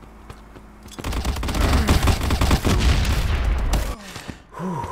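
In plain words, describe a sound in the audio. Gunshots crack in a rapid burst.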